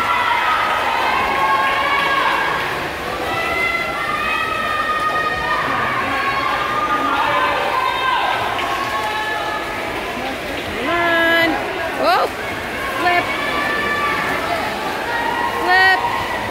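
Swimmers splash through the water doing freestyle in an echoing indoor pool.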